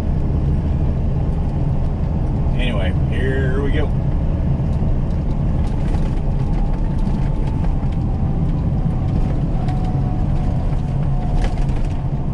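A heavy diesel truck engine drones from inside the cab while cruising.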